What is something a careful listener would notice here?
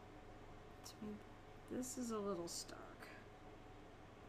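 A young woman speaks briefly and casually into a microphone.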